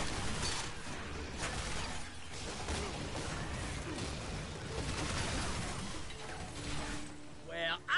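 Rapid gunfire rattles and booms.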